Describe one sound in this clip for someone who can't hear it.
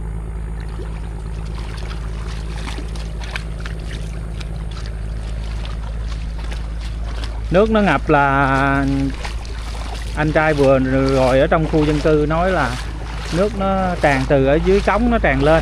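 Feet wade and splash through shallow water.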